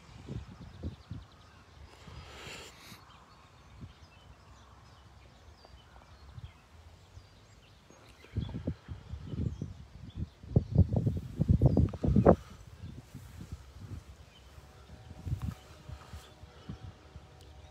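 An elderly man speaks quietly at a distance outdoors.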